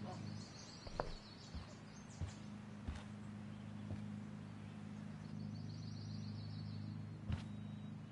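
Light footsteps tap on a floor.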